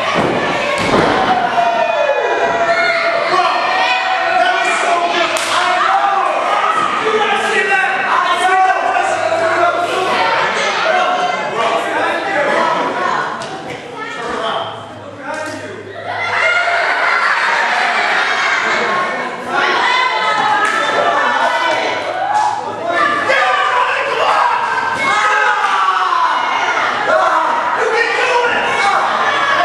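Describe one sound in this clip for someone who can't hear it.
A crowd shouts and cheers in a large echoing hall.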